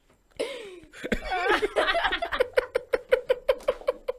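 A young man laughs into a microphone.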